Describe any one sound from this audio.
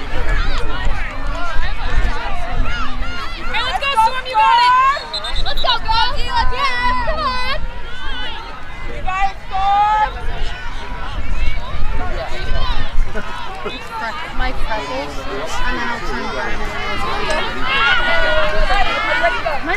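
A crowd of young women and spectators shout and cheer outdoors.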